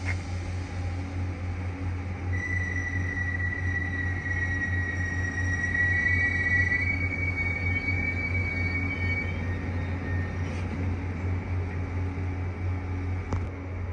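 An electric train rolls into the station and slows down.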